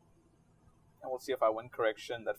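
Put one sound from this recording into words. A man speaks calmly into a headset microphone, close by.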